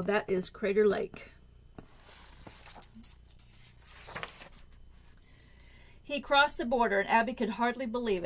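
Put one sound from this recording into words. A middle-aged woman reads aloud calmly, close by.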